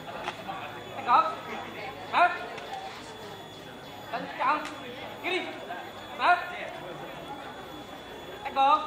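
Young people shout drill calls together in loud bursts.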